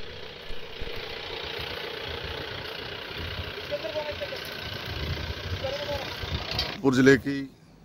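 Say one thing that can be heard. A truck engine runs.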